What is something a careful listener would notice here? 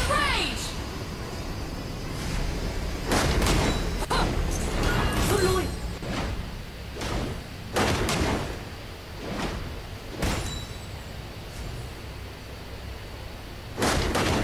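Magic blasts and whooshes burst out in quick bursts.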